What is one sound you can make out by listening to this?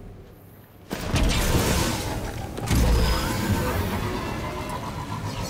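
A hover bike's engine roars as it speeds away.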